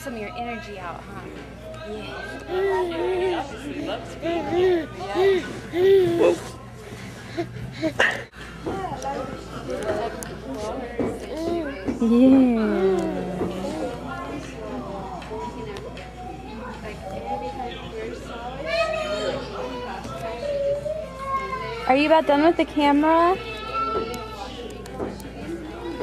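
A baby babbles and coos.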